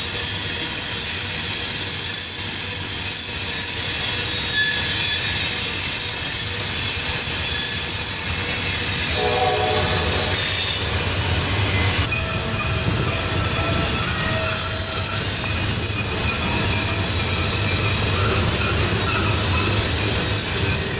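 Loaded freight cars rumble and clatter along the rails close by.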